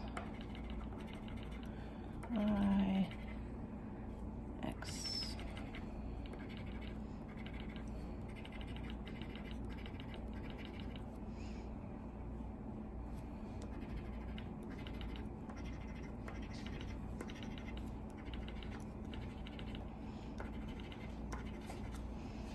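A coin scratches quickly across a scratch card.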